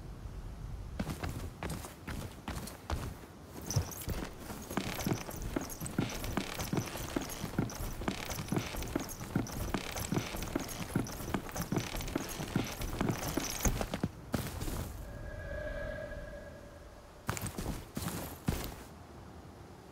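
Footsteps tread on stone.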